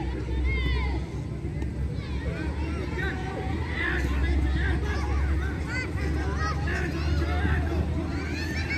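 Young men shout to each other far off across an open field.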